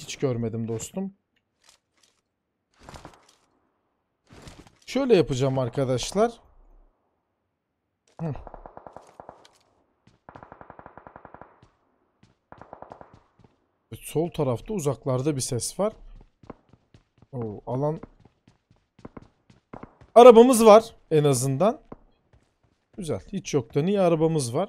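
A young man talks with animation, close to a microphone, in bursts and pauses.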